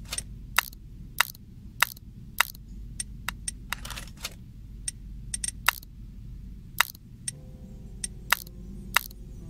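Soft sharp clicks sound as flower petals turn.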